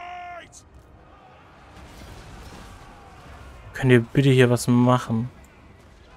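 Weapons clash and soldiers fight in a battle.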